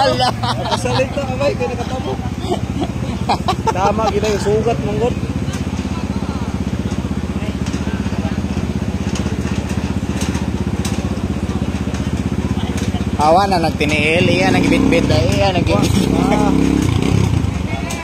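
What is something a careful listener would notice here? A crowd of men and women talk and call out nearby.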